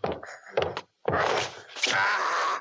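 A man cries out loudly in strain.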